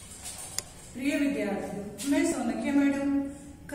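A middle-aged woman speaks calmly and clearly.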